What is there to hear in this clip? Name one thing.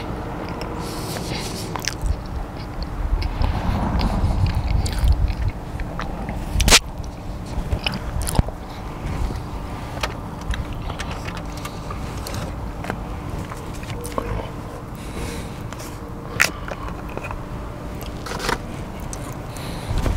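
A car engine hums steadily from inside the cabin.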